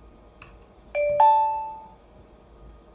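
A device sounds a longer electronic confirmation tone.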